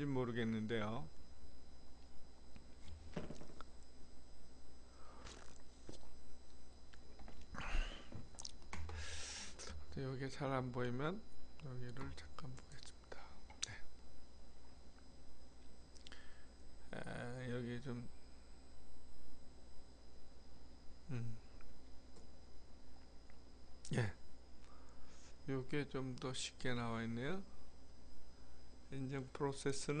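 An elderly man speaks calmly into a microphone, heard through an online call.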